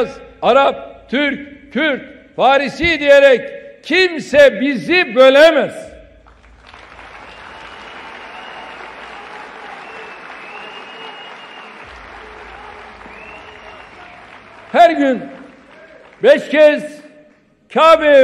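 An older man speaks forcefully into a microphone.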